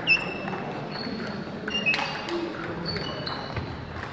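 A table tennis ball clicks back and forth across a table.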